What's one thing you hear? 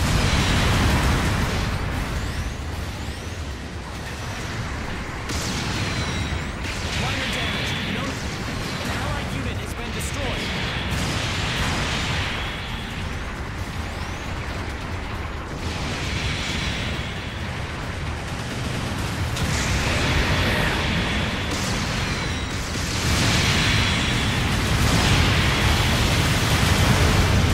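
Mechanical thrusters roar steadily.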